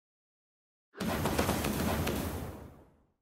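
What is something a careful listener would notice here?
A rushing burst of game sound swells and fades.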